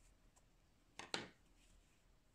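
A crochet hook taps down onto a wooden table.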